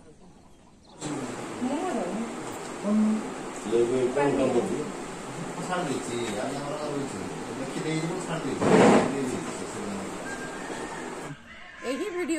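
A woman talks.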